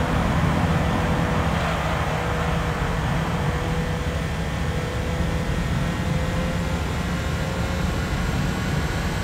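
A race car engine roars steadily at high revs.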